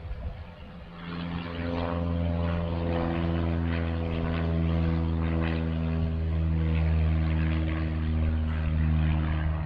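A propeller plane's engine drones loudly and steadily.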